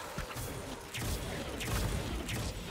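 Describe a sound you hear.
A fiery spell bursts with a loud roar.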